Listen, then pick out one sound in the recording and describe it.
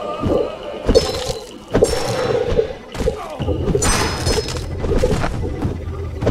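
A stone axe strikes flesh with heavy thuds.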